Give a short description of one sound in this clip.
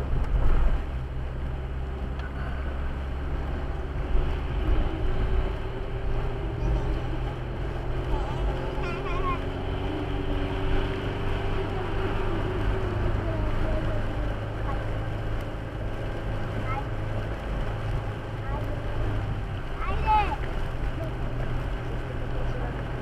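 A car engine hums steadily from inside the cab.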